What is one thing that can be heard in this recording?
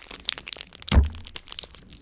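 Cards are slapped down onto a wooden table.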